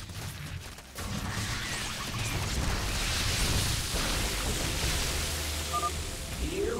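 Electric bolts crackle and zap in a burst of fighting.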